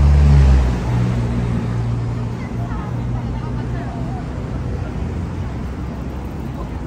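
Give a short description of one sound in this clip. Footsteps of people walk on a city pavement.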